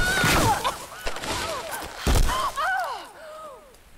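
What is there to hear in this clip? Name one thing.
A body crashes through branches and thuds onto the ground.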